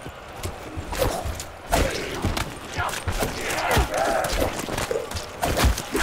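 A revolver fires loud gunshots.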